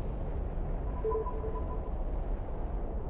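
An electronic interface beeps softly.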